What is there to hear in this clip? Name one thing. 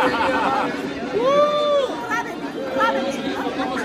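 An elderly woman speaks excitedly close by.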